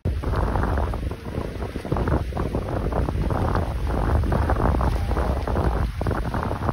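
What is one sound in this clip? Wind rumbles heavily across the microphone outdoors.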